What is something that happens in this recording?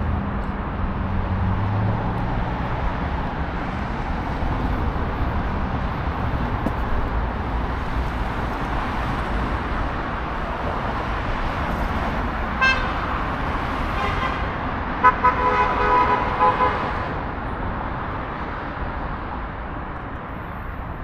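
Street traffic rumbles steadily nearby.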